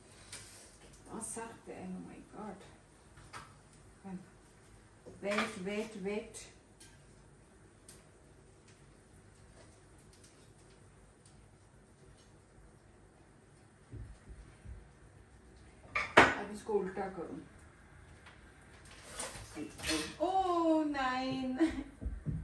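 Dishes and utensils clink and knock on a counter.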